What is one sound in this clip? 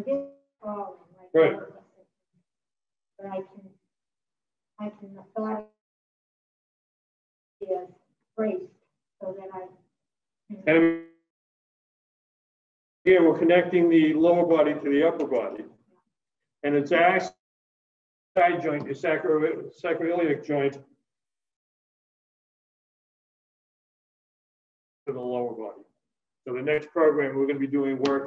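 A man speaks with animation through a mask, heard in a room with some echo.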